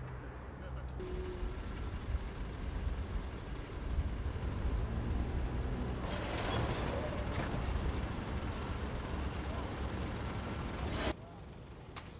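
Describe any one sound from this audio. A crane engine hums steadily outdoors.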